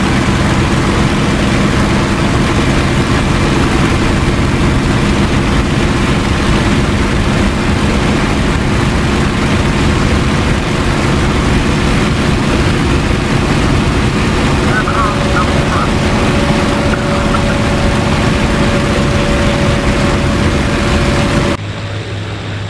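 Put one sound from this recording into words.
A propeller engine roars loudly and steadily from close by.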